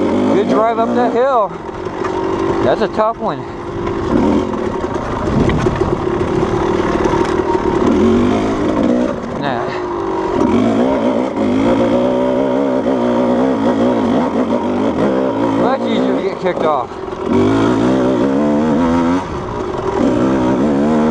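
Stones crunch and rattle under the tyres.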